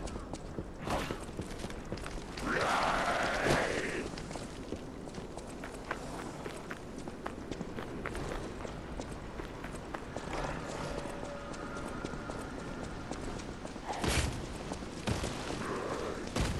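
Footsteps crunch steadily on gravel and stone.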